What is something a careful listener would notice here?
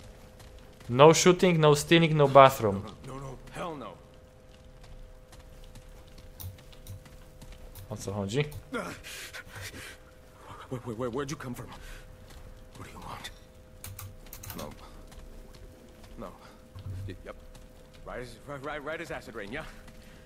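A man speaks nervously and stammers, heard close by.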